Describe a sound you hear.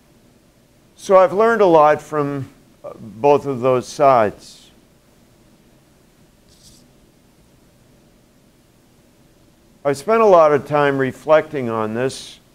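An elderly man speaks calmly and with pauses, close to a microphone.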